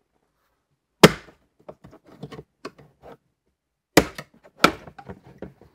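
Plastic trim snaps and clicks as it is pried loose.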